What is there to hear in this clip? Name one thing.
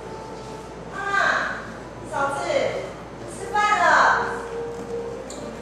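A woman cries out loudly in a wailing voice.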